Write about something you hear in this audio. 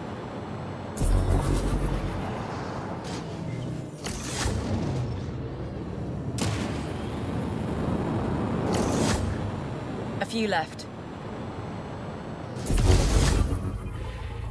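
Loud blasts boom now and then.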